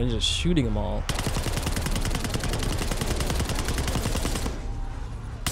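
Rapid gunfire rattles in a steady burst.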